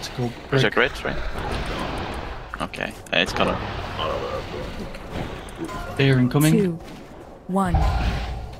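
Magic spells crackle and whoosh during a fantasy battle.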